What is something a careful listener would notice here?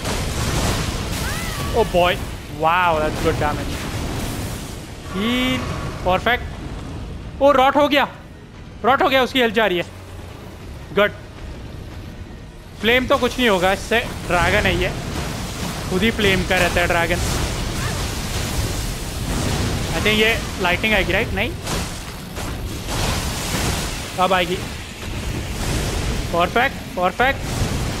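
Red lightning crackles and bursts.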